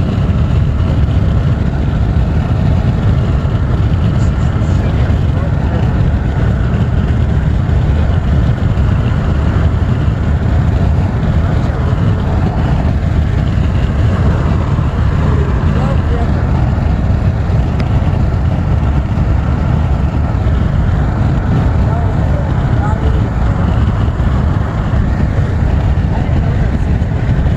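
Wind rushes past the car.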